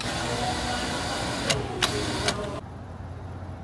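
Soda pours from a fountain dispenser into a cup with a fizzing hiss.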